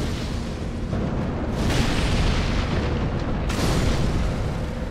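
A fireball bursts with a roaring whoosh.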